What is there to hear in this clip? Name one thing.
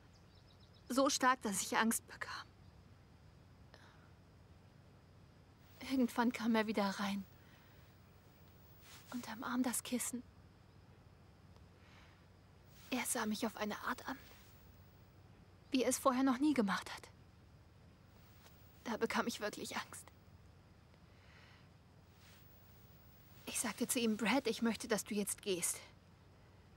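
A young woman speaks quietly, close by, in short pauses.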